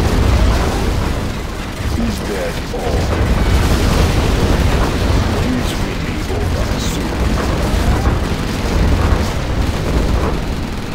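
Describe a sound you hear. Tank cannons fire in a video game battle.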